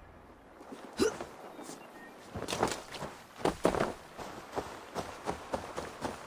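Footsteps crunch quickly on rough ground.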